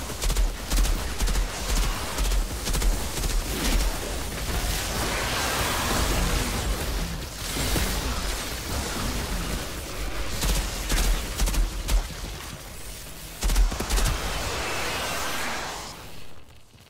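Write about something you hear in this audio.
Heavy gunfire rattles rapidly.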